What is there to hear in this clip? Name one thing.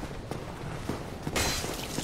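A sword clangs against an enemy.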